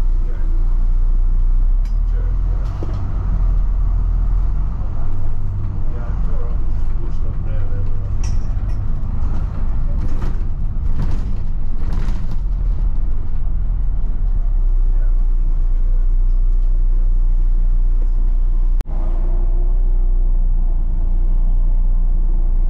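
A bus engine rumbles steadily as the bus drives along a street.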